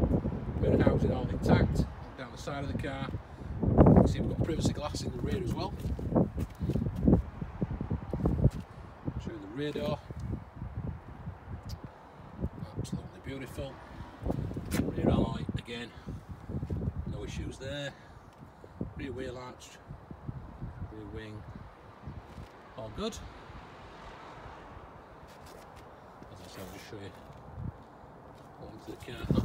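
A man talks calmly close to the microphone.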